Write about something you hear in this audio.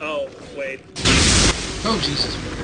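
A magic spell bursts with a loud whoosh.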